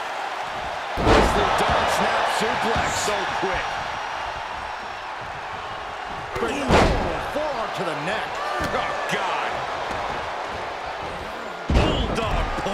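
Heavy thuds sound as wrestlers slam onto a ring mat.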